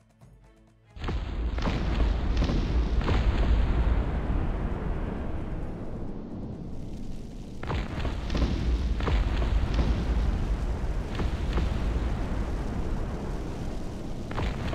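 Cannon shots boom again and again.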